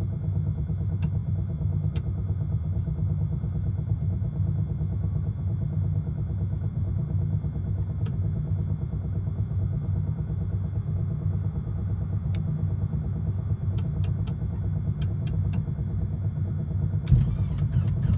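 Switches click sharply now and then.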